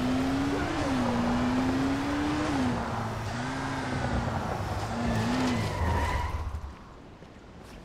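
An engine hums and revs unevenly.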